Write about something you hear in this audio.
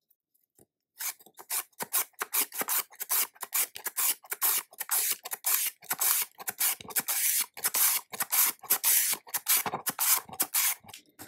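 A carrot scrapes rapidly back and forth across a grater.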